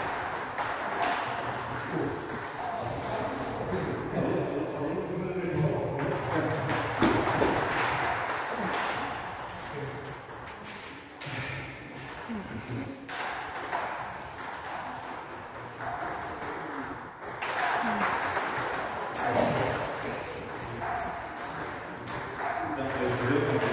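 Table tennis balls click back and forth on tables and paddles in an echoing hall.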